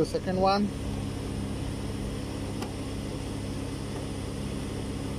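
An outdoor air conditioning unit hums steadily.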